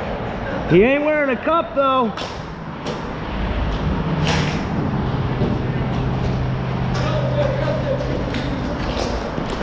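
Skate wheels roll steadily over a hard smooth floor.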